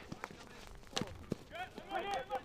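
A hockey stick strikes a ball with a sharp crack.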